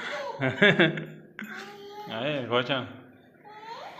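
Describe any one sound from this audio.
A toddler laughs and babbles close by.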